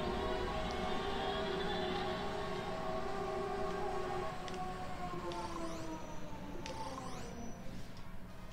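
A spaceship engine roars and its pitch falls away.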